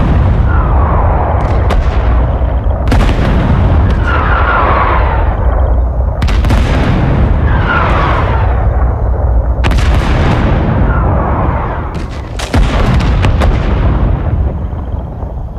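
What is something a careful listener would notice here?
Heavy explosions boom and rumble one after another.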